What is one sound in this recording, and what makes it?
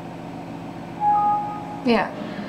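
A computer alert chime sounds once.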